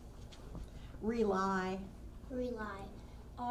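A second young girl speaks into a microphone.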